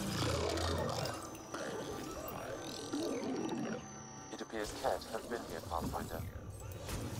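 An energy beam hums and crackles.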